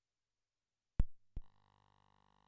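A switch clicks twice.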